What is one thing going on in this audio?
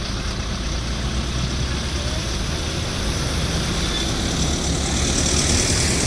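A heavy truck's diesel engine rumbles as it passes close by.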